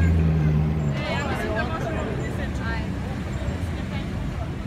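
A crowd of onlookers chatters nearby.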